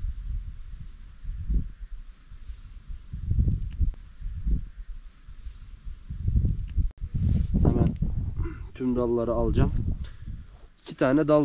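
Pruning shears snip through a thin branch.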